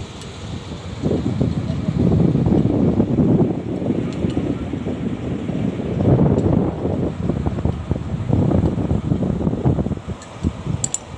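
Wind blows and buffets loudly outdoors.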